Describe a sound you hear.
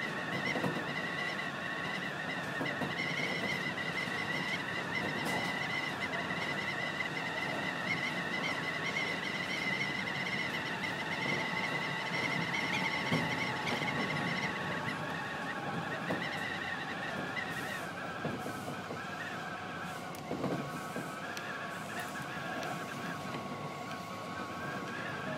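A train hums and rumbles steadily along its tracks.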